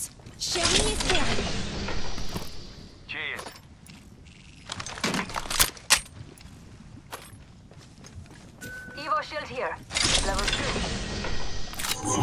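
Items click and rattle as they are picked up.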